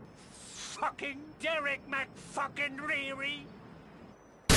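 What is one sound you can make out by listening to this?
A man speaks tensely up close.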